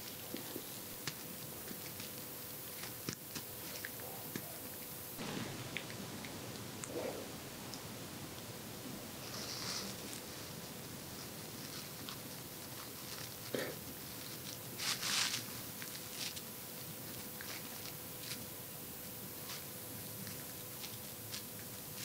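A metal tool scrapes and clicks softly inside an ear, heard very close.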